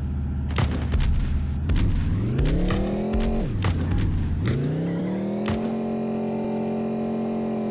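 A truck engine hums and revs up and down.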